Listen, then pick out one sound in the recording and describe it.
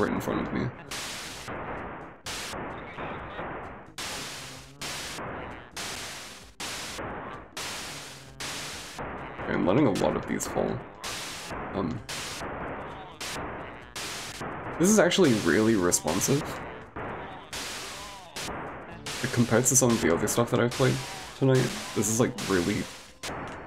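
A retro console video game fires laser shots with sharp electronic zaps.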